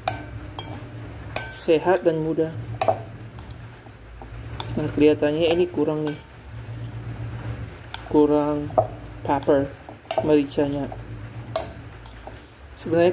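A spoon clinks and scrapes against a glass bowl while stirring.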